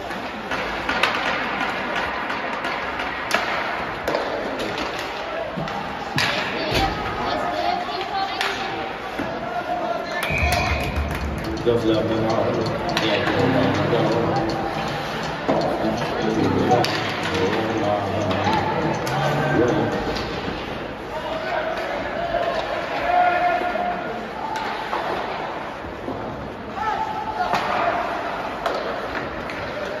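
Skate blades scrape and hiss on the ice.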